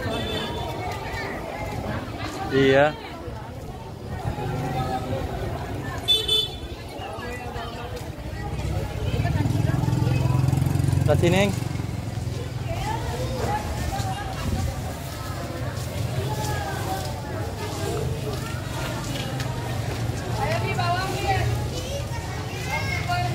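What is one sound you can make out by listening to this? Many voices chatter nearby in a busy crowd outdoors.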